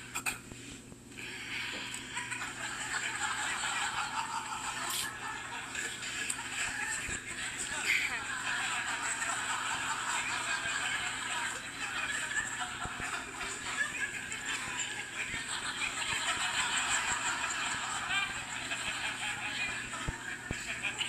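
A young woman talks and laughs, heard through a television speaker.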